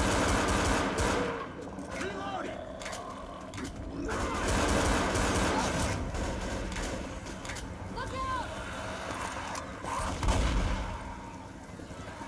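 A shotgun fires loud blasts in quick bursts.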